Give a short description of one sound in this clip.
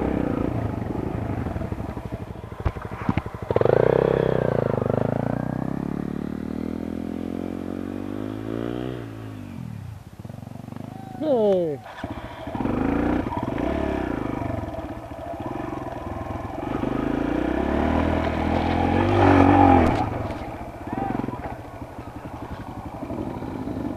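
A dirt bike engine revs close by.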